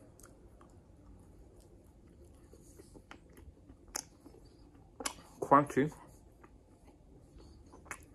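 A man chews food with soft, wet sounds.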